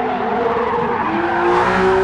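Tyres squeal as a car slides through a corner.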